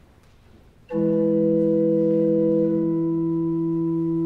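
An organ plays a sustained chord.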